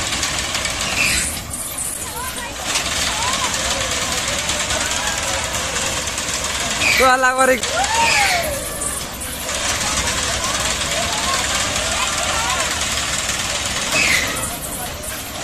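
Riders in a crowd scream and shout.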